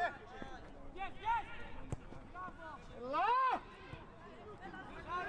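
Young male players shout to each other across an open field.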